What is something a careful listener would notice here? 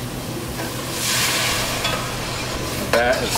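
Liquid pours into a hot pot with a hiss.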